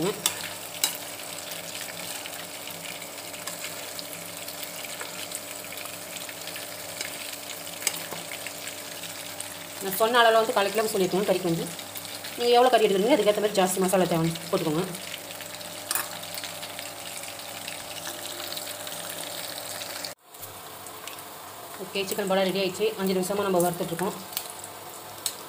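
Hot oil sizzles and bubbles steadily in a pan.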